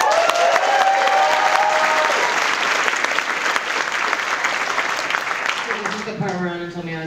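A crowd claps and cheers in a large echoing hall.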